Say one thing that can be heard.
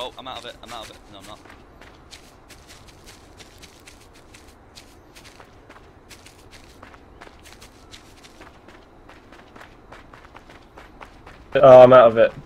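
Footsteps tread quickly over grass.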